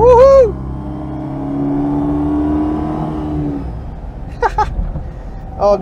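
A small car engine hums steadily from inside the car.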